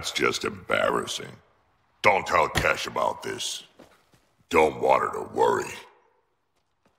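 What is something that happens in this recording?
A man speaks in a deep, gruff voice close by.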